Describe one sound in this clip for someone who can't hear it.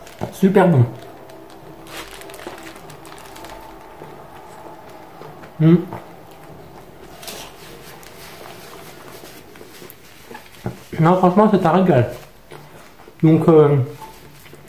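A man chews and eats noisily.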